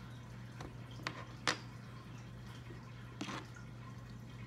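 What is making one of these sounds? Plastic toy bricks click and clatter on a table.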